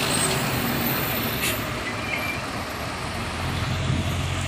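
A car drives past on a road nearby.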